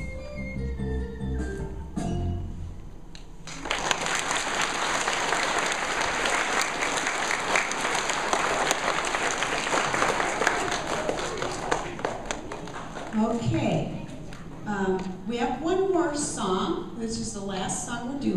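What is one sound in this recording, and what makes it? A large children's choir sings together in an echoing hall.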